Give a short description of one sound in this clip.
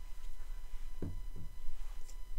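Small wooden blocks knock lightly on a hard surface.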